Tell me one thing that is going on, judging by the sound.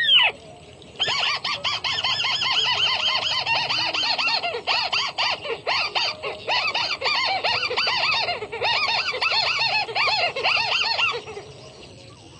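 A small bird chatters and trills rapidly for several seconds.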